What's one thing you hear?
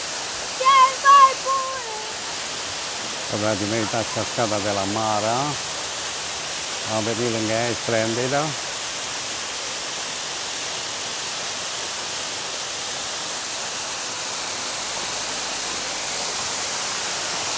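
A waterfall rushes and splashes steadily onto rocks.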